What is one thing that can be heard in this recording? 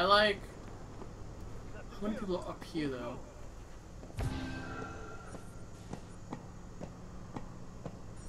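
Footsteps clang softly on metal stairs.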